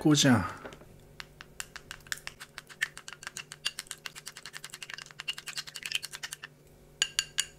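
Chopsticks clink rapidly against a glass bowl, whisking egg.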